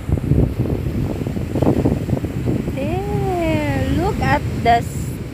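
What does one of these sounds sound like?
Waves wash gently onto a sandy shore.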